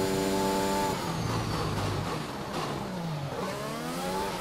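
A racing car engine drops in pitch as the car brakes and shifts down.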